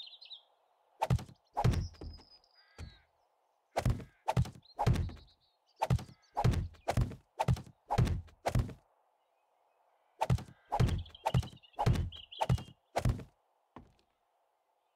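Wooden building blocks thud and clack into place one after another.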